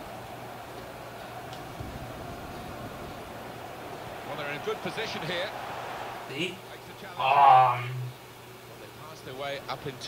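A stadium crowd murmurs and cheers in the distance.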